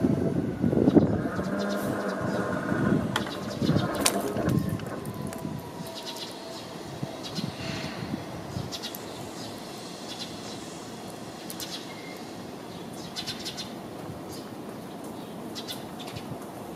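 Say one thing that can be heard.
A train rumbles along the tracks and fades as it moves away.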